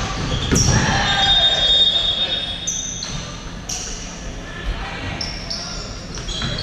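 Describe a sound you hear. Shoes squeak sharply on a hard floor in a large echoing hall.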